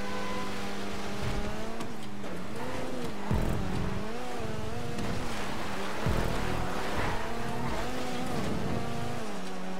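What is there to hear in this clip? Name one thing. A racing car engine roars, its pitch rising and dropping with each gear change.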